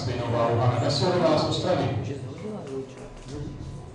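Metal weight plates clank on a barbell.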